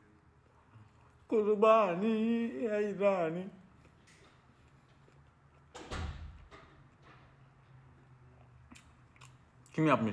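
A young man chews food with his mouth closed.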